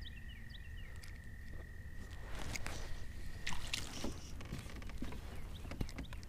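A fishing reel clicks as it is cranked.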